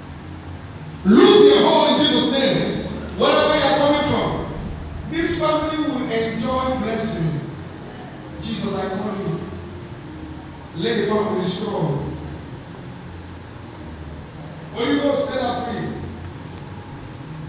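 A man speaks forcefully into a microphone, heard through loudspeakers in an echoing hall.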